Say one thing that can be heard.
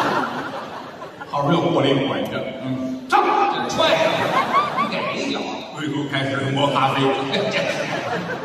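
A middle-aged man speaks with animation through a microphone on a stage.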